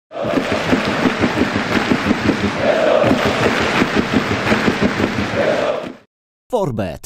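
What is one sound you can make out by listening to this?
A large stadium crowd cheers, chants and claps loudly.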